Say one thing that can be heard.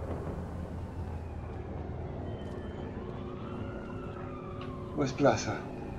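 Footsteps walk slowly on a hard floor.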